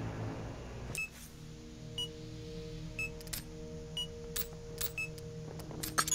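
Short electronic beeps sound once a second.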